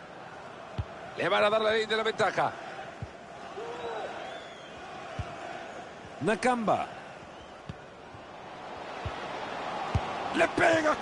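A football is kicked with dull thuds now and then.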